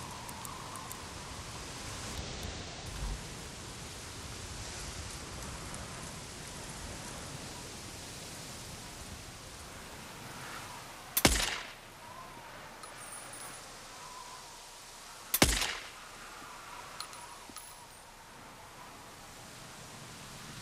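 A man speaks quietly close to a microphone.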